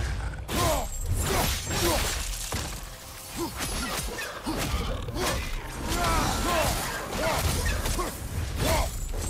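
Heavy blades slash and strike with loud metallic impacts.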